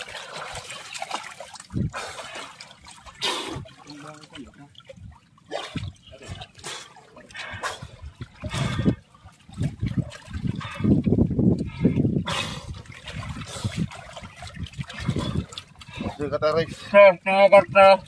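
A fishing net rustles as hands pull at it.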